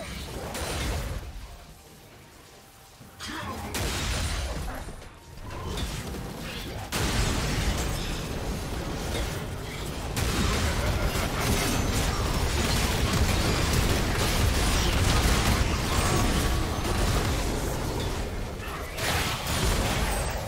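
Video game spell effects whoosh, crackle and clash during a fight.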